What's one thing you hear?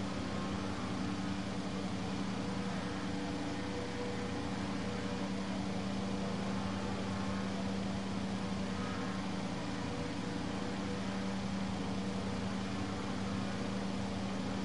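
A racing car engine idles with a steady, low hum.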